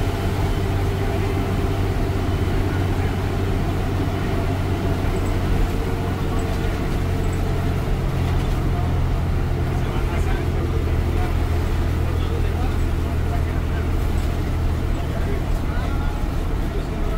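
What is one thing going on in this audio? A bus engine drones steadily from inside the cab.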